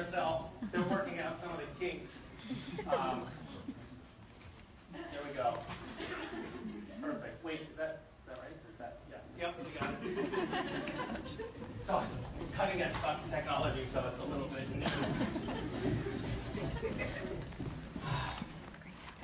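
An audience laughs and chatters in a large room.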